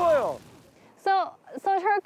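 A young woman speaks briefly close to a microphone.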